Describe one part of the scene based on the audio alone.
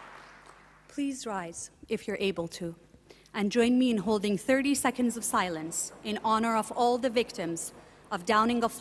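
A young woman speaks calmly into a microphone, heard through loudspeakers.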